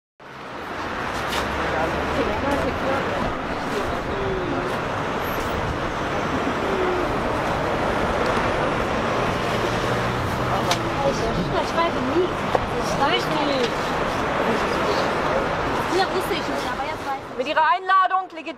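A crowd of people murmurs and chatters outdoors.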